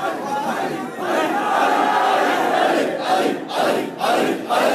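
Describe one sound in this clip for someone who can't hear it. A crowd of men calls out together loudly.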